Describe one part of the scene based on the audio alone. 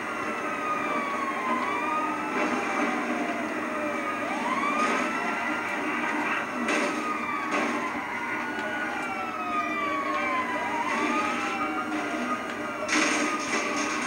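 A car engine roars as the car speeds along.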